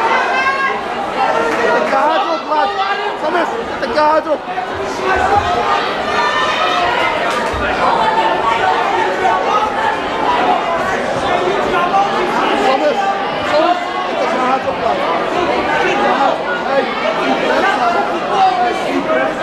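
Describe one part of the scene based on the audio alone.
A large crowd chatters and shouts loudly in an echoing hall.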